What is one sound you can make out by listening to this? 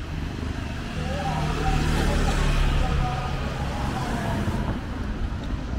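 A motorbike with a sidecar rumbles past close by.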